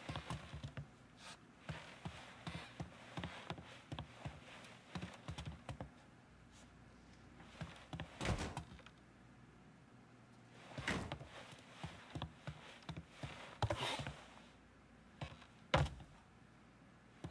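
Footsteps thud on wooden floorboards at an even pace.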